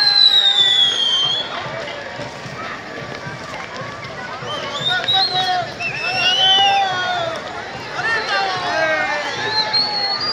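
Fireworks hiss and crackle nearby.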